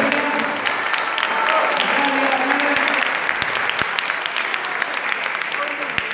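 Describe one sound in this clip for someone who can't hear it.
A crowd of people chatter and call out in a large echoing hall.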